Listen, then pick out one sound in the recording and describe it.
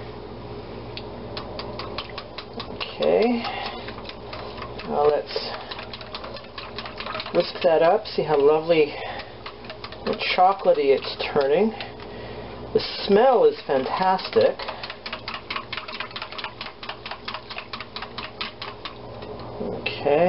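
A wire whisk beats rapidly against a glass bowl, clinking and tapping.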